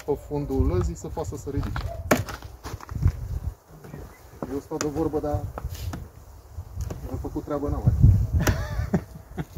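Wooden frames knock and clatter in a hive box.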